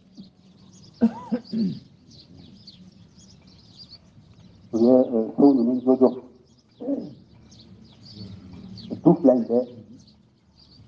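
An elderly man chants in a drawn-out voice.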